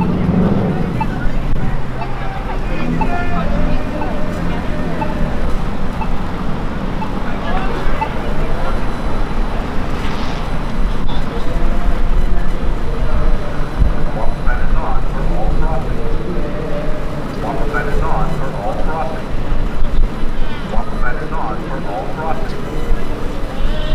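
City traffic rumbles steadily in the background.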